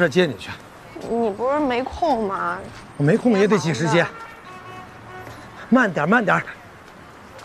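A middle-aged man answers warmly nearby.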